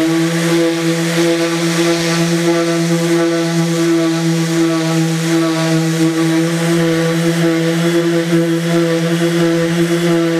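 An electric sander whirs steadily against a board.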